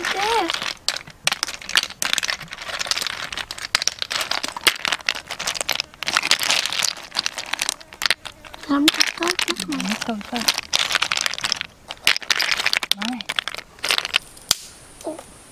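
Snail shells clatter and rattle in a wicker basket as hands stir them.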